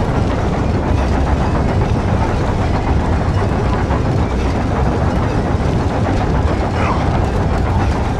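A heavy platform rumbles and grinds as it rises.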